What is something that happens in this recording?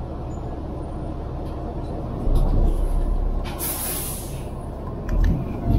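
A vehicle rumbles steadily while moving.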